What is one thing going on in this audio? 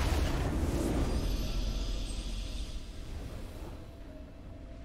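A triumphant game fanfare plays loudly and then fades.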